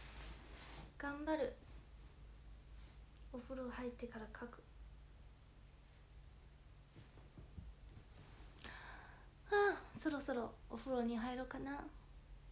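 A young woman speaks softly and calmly, close to a microphone, with pauses between phrases.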